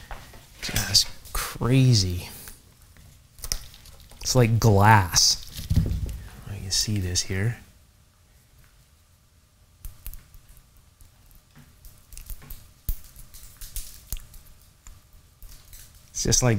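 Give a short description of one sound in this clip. Small metal parts click and scrape as they are worked loose by hand.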